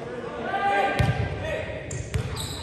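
Young men shout and call out across the court.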